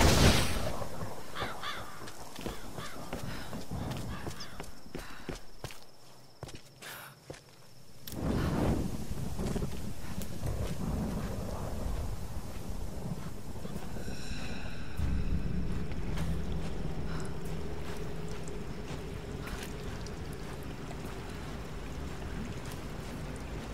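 Footsteps crunch on a rocky floor.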